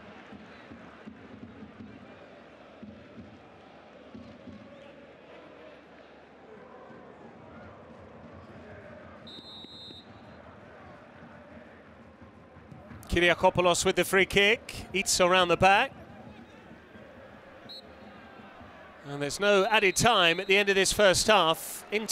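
A stadium crowd murmurs and chants in the distance.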